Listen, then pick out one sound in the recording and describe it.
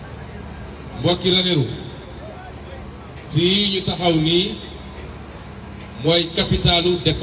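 A man speaks slowly and forcefully into a microphone through a loudspeaker, pausing between phrases.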